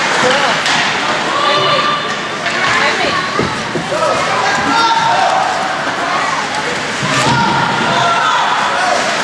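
Players shout to each other across an echoing rink.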